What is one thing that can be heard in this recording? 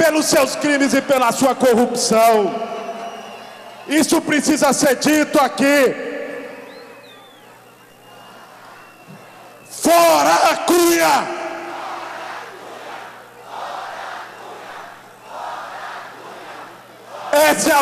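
A large crowd murmurs and cheers in the distance.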